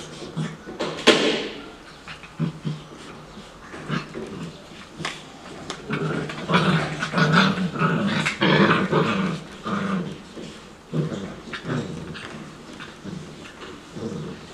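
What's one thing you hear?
Puppies scuffle and tussle on soft toys.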